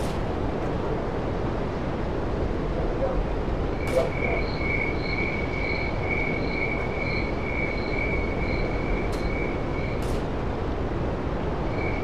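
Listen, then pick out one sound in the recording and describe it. Wind blows steadily through the trees outdoors.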